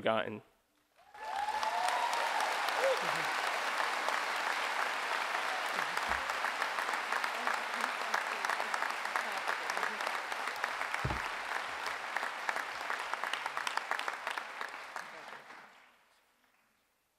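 A large crowd applauds and cheers loudly.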